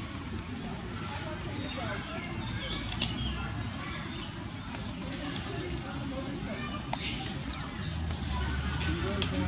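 A baby monkey chews food softly.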